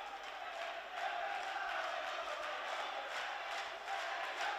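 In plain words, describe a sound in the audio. A crowd claps its hands.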